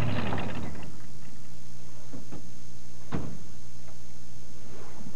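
A small plane's engine idles with a low, steady hum.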